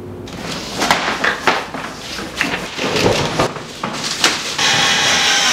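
Cardboard boxes rustle and thump.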